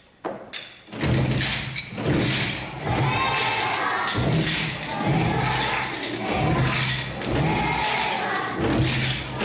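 A choir of young children sings together in a hall.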